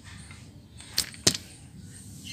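A metal wrench clicks against metal.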